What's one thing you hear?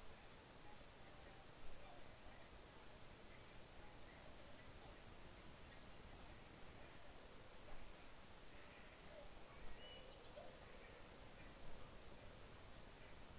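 Large wings flap in slow, regular beats.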